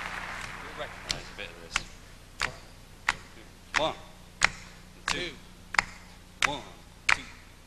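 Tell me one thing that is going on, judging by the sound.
A group of people clap their hands in a slow, steady rhythm.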